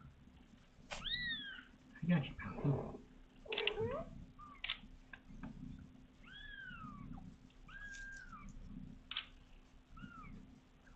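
A newborn kitten mews in high, thin cries.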